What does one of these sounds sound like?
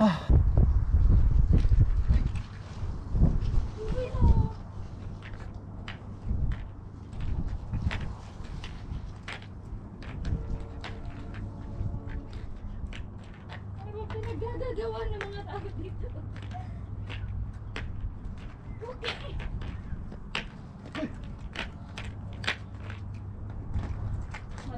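Skateboard wheels roll and clack on pavement in the distance.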